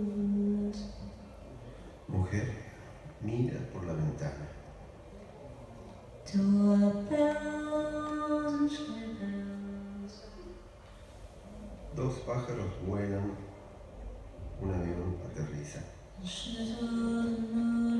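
A woman sings into a microphone, with held notes and pauses.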